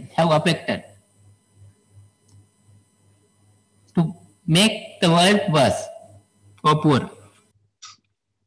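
A man speaks calmly through a microphone on an online call.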